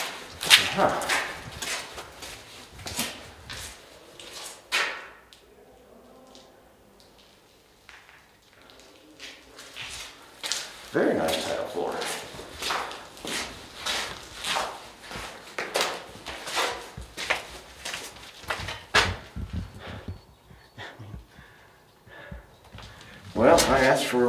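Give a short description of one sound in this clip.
Footsteps crunch on a gritty floor in an echoing space.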